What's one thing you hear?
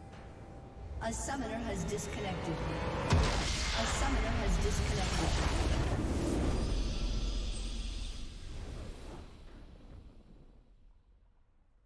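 Triumphant game music swells and then slowly fades away.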